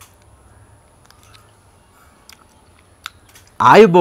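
A man chews food.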